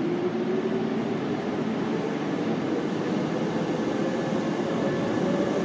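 A train rumbles and clatters steadily along the tracks close by.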